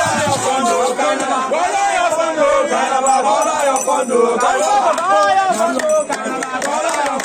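A crowd of young men sings loudly together outdoors.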